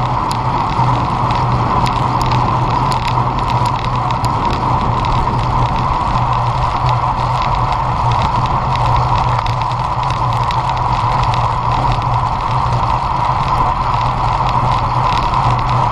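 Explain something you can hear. A bicycle's parts rattle and tick over bumps.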